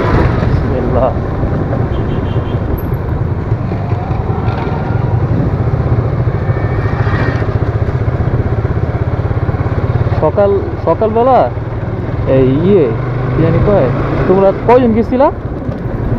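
A motorcycle engine hums as the bike rides along at low speed.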